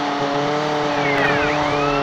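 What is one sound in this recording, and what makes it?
A siren wails.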